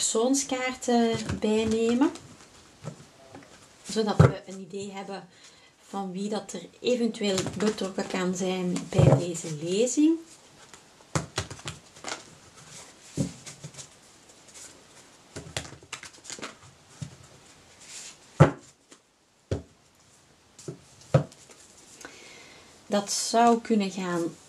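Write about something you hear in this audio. Playing cards rustle and slap together as they are shuffled by hand.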